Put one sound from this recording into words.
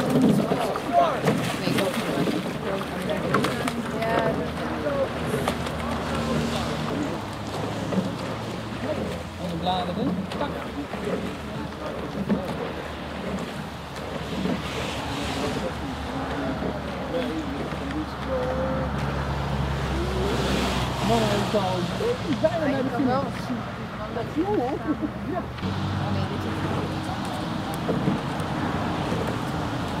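Oars dip and splash in water at a steady pace.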